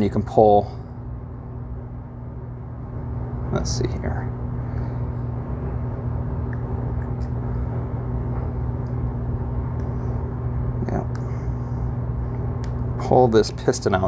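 Small plastic and metal parts click and rattle as they are handled.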